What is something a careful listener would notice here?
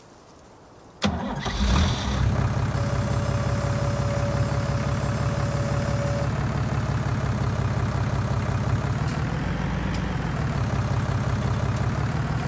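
A tractor engine starts up and rumbles steadily.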